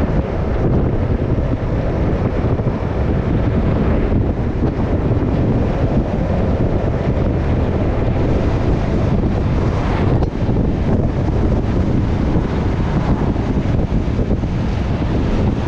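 A vehicle engine hums steadily while driving on a road.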